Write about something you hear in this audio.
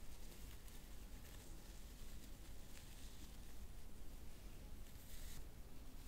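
A dry grass stalk brushes softly close to the ears.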